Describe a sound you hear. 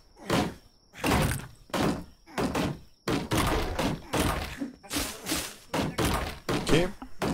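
An axe chops into wood in quick, repeated strokes.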